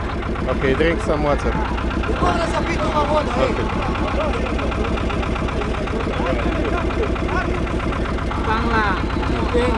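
Several men shout and chatter over one another.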